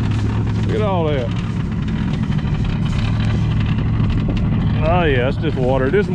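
A car engine idles with a deep, steady rumble from the exhaust.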